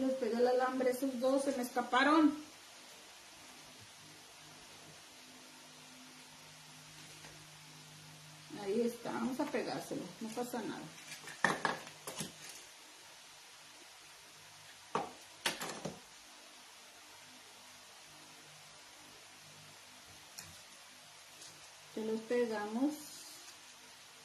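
A middle-aged woman speaks calmly close by.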